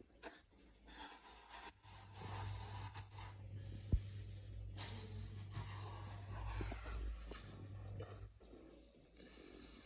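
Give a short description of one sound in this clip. A young man blows air into a balloon in long puffs.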